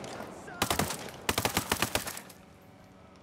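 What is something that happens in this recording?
A rifle fires rapid loud bursts close by.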